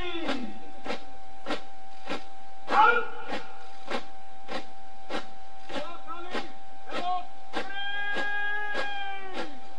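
Boots stamp in step as a column marches on hard ground.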